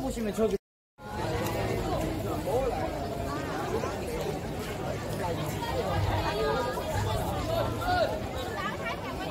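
Many footsteps shuffle on pavement.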